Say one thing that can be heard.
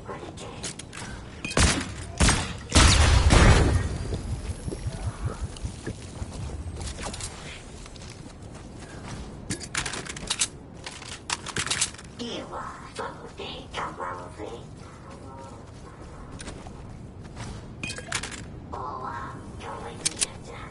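Footsteps thud on dry ground as a game character runs.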